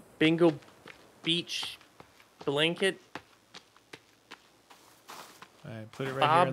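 Footsteps tread steadily through grass and sand.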